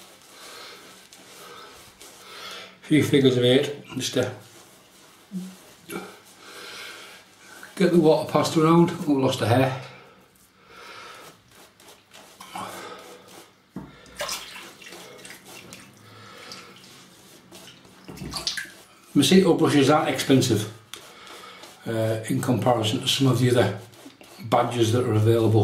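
A shaving brush swishes and scrubs lather over stubble.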